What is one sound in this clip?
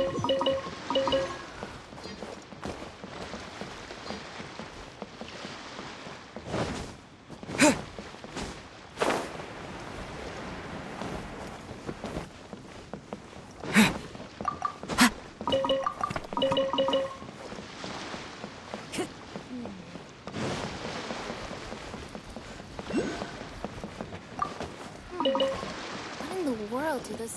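Bright game chimes ring in short bursts as items are picked up.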